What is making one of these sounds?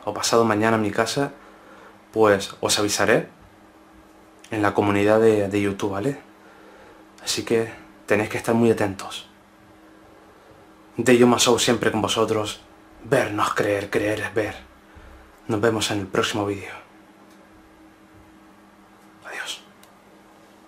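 A man speaks quietly and close to the microphone, in short bursts with pauses.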